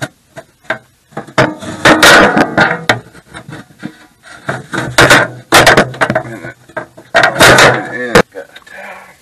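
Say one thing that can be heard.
A man rubs and scrapes a metal panel by hand.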